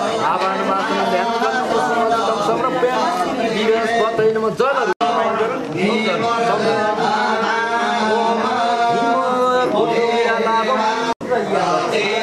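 A man chants prayers in a steady, sing-song voice.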